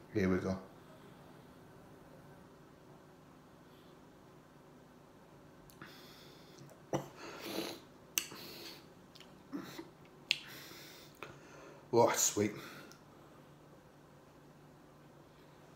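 A man gulps a drink.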